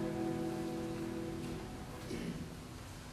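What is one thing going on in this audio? A string ensemble plays a sustained chord in a large hall and stops.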